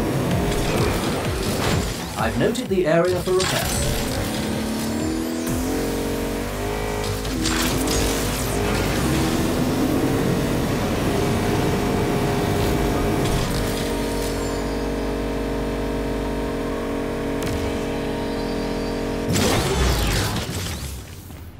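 Tyres screech as a car drifts round a corner.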